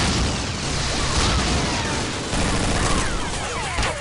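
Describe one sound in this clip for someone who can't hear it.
Gunfire crackles rapidly in a game.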